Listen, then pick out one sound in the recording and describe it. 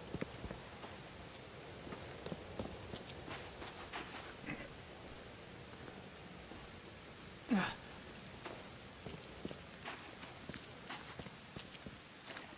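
Footsteps crunch steadily on grass and dirt.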